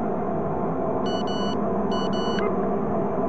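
A mobile phone gives short electronic beeps.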